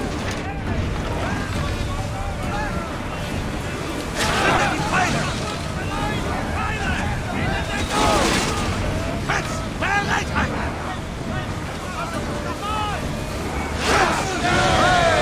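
Waves wash and rush against a ship's hull.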